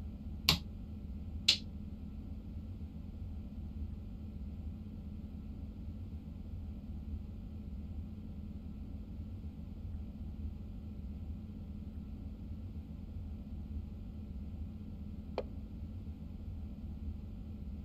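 A train engine hums steadily with a low drone.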